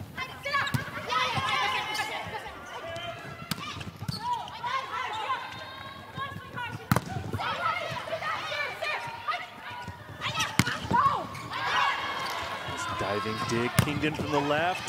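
A volleyball is struck hard with sharp smacks.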